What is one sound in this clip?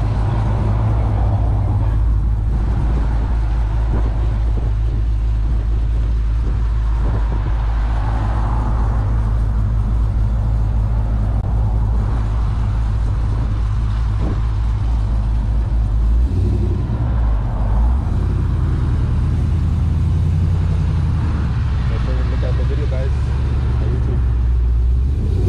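A truck engine idles with a deep, loud rumble close by.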